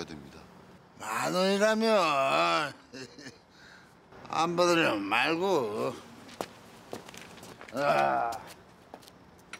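An older man speaks cheerfully, close by.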